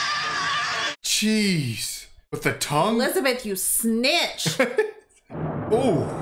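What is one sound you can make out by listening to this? A young woman whimpers and groans in distress close to a microphone.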